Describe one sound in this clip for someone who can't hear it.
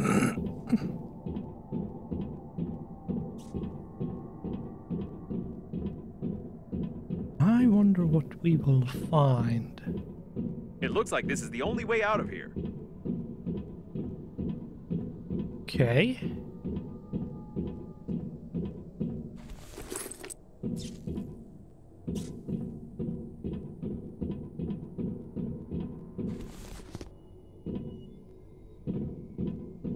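Footsteps tap steadily on a metal floor.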